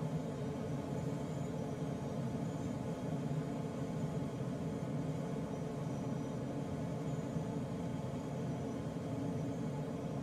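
Wind rushes steadily past a glider's canopy in flight.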